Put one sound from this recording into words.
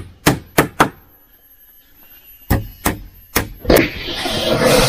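A blade chops sharply into wood.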